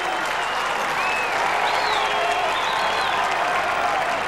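Crowd members whistle shrilly.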